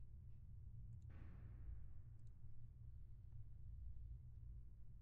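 A sheet of paper rustles as a page is turned.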